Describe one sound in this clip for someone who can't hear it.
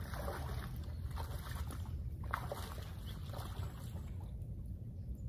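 Water splashes and sloshes as a person wades through it.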